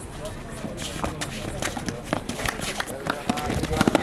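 Bare feet slap and thump on a court mat.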